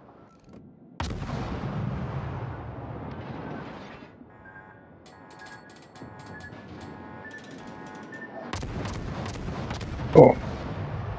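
Heavy naval guns fire with loud, deep booms that rumble away.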